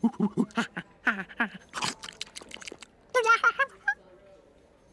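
A monkey chatters and squeaks excitedly.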